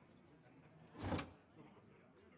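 Cards swish as a hand of cards fans out.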